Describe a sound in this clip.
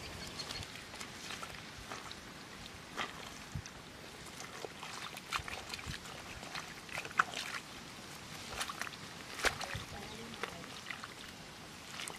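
Dry leaves and twigs crackle as hands scrape through soil.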